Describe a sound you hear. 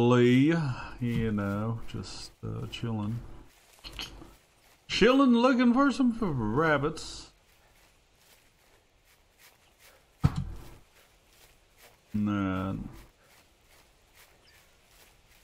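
Footsteps rustle through undergrowth on the forest floor.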